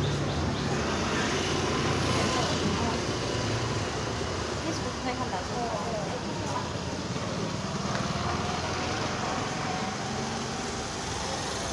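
Motorcycles ride past on a street with engines humming.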